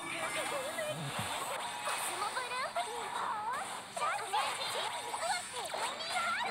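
Magic blasts whoosh and crackle in a fast battle.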